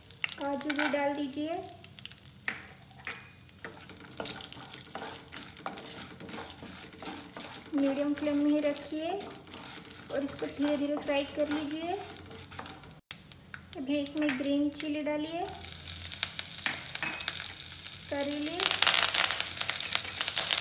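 Oil sizzles and crackles in a pan.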